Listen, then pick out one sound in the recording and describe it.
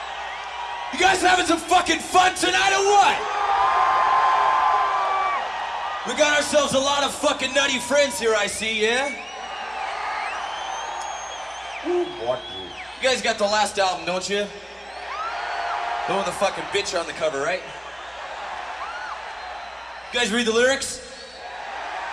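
A man shouts loudly through a microphone and loudspeakers, in short bursts.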